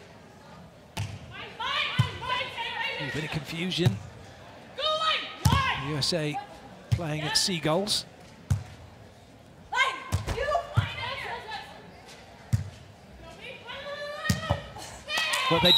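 A volleyball is struck with sharp slaps during a rally.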